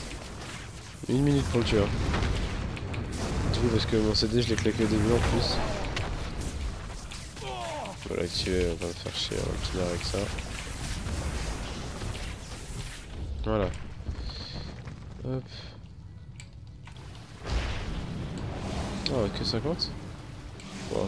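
Combat effects crash and clang in a game.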